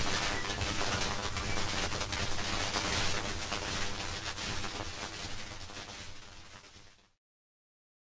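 Surface crackle and hiss come from an old gramophone record.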